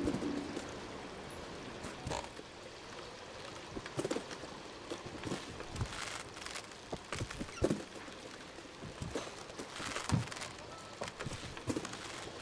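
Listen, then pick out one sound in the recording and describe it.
Small footsteps patter on creaking wooden planks.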